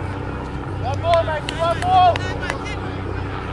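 A cricket bat strikes a ball with a sharp crack in the distance.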